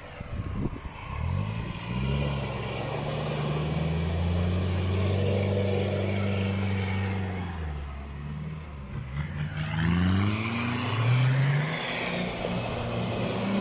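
Water splashes and sloshes under a vehicle's wheels.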